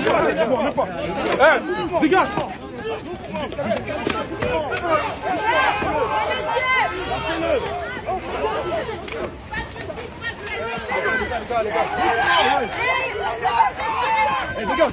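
A crowd of men and women shout and yell loudly nearby, outdoors.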